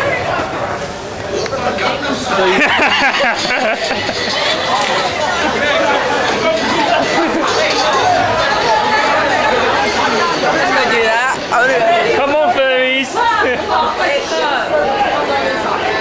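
A crowd of men and women chatter and call out close by outdoors.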